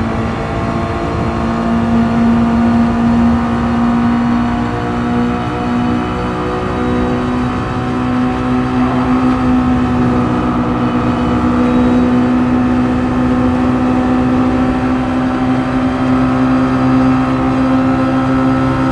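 A racing car engine drones at high revs, steady and loud.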